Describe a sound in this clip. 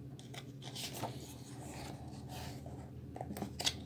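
A book page turns with a papery rustle.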